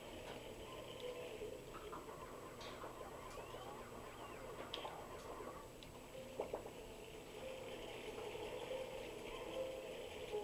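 A vacuum whooshes steadily as it sucks air.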